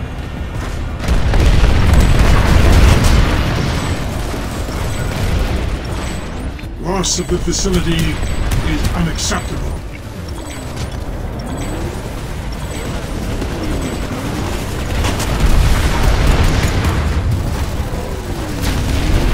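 A vehicle's heavy gun fires in rapid bursts.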